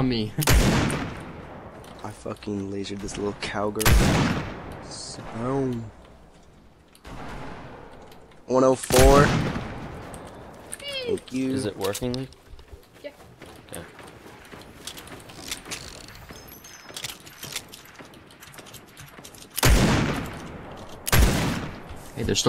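Loud rifle shots crack now and then, each with a ringing echo.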